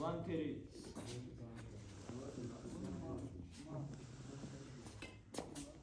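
A group of young men chat nearby.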